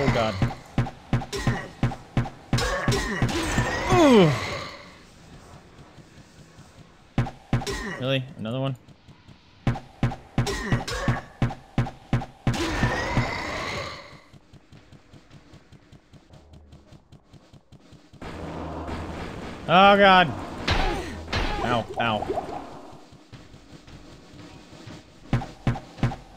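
Video game combat sounds thud and crackle in quick bursts.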